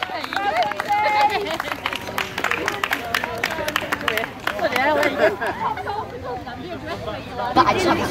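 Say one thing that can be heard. Children shout excitedly nearby.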